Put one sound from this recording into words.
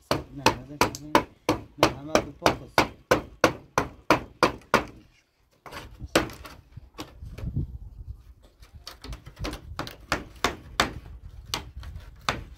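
A hammer taps rapidly on thin wooden slats.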